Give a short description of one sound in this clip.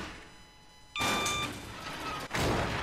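An electronic door lock beeps.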